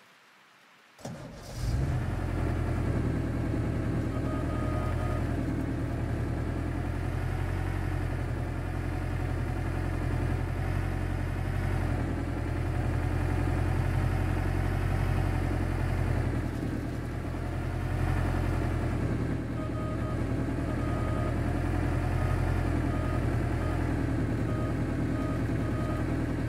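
A heavy truck engine rumbles and drones steadily.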